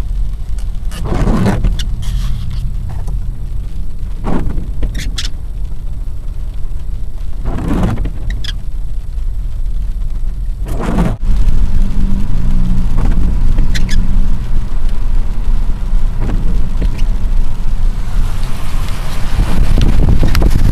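A car drives along a wet road with a steady low rumble and tyre hiss.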